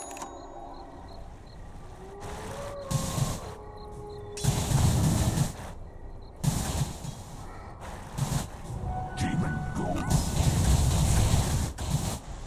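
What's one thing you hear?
Magic spells blast and crackle in bursts.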